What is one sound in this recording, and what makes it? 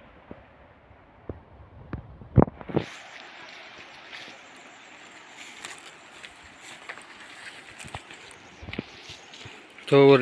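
Footsteps tread on a dirt path through grass.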